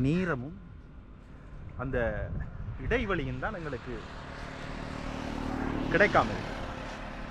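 A man speaks close up, in short bursts.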